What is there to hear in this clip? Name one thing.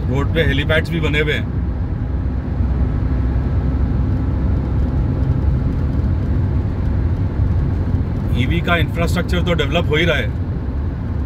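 A car hums steadily as its tyres roll along a smooth road.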